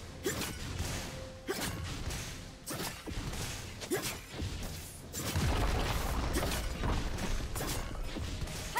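Fantasy battle sound effects burst and crackle repeatedly.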